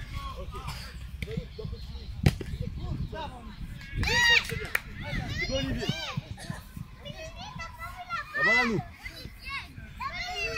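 Young children shout and call out excitedly outdoors.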